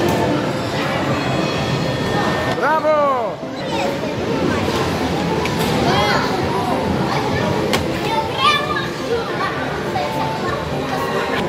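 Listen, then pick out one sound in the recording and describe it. A busy arcade hall hums with chatter and game machine noise throughout.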